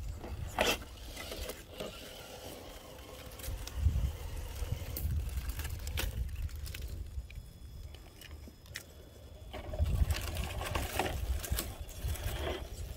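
A small electric motor whirs as a toy truck crawls over rocks.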